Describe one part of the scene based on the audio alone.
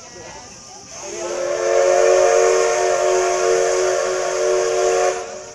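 A steam locomotive's whistle blows loudly and steadily.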